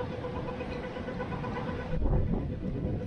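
A pedestrian crossing signal beeps in quick, even ticks.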